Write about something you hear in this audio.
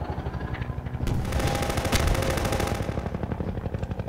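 A helicopter's gun fires in bursts.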